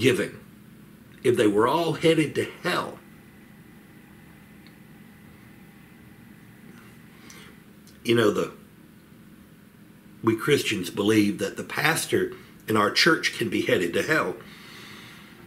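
A middle-aged man talks calmly and closely into a microphone, with pauses.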